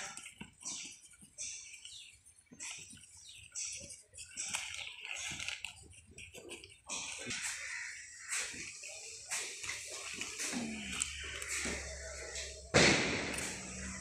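Burning paper crackles and pops.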